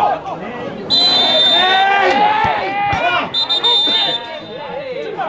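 A referee's whistle blows shrilly, twice.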